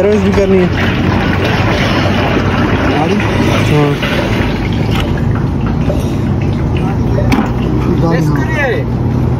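Liquid glugs and splashes as it pours from a jug into a funnel.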